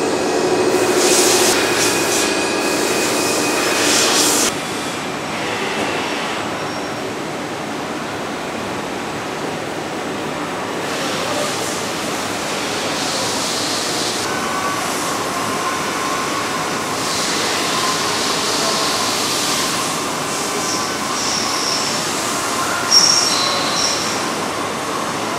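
Industrial machinery hums steadily.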